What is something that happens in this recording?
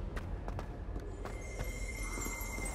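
Footsteps run quickly across a stone floor.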